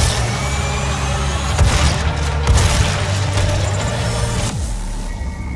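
A shotgun fires with loud, booming blasts.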